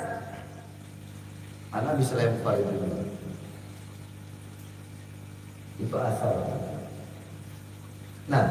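A man speaks calmly into a microphone, heard through a loudspeaker in a reverberant room.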